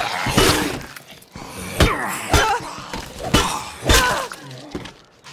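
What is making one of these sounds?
Heavy blunt blows thud repeatedly against bodies.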